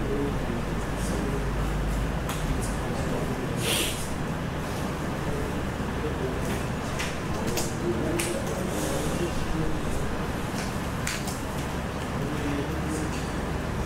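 Keyboard keys click as someone types.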